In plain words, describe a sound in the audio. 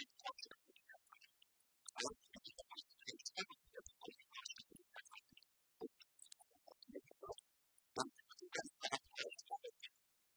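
Keys clatter on laptop keyboards.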